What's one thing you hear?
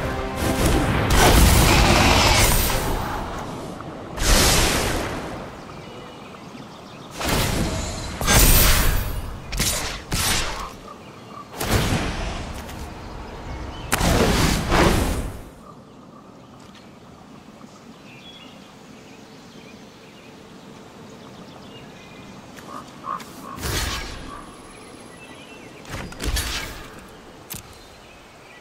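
Short magical whooshes and chimes of a card game play in bursts.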